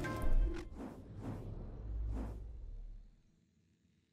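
A game menu whooshes as it switches to a new page.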